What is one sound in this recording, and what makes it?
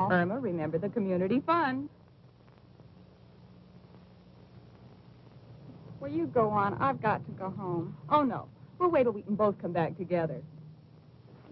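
A young woman speaks in a tense, hushed voice.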